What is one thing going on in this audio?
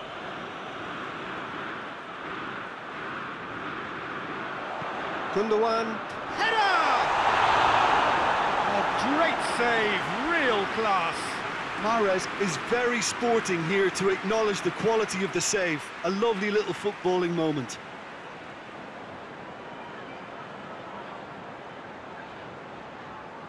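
A large stadium crowd roars and cheers loudly, then settles into a steady murmur.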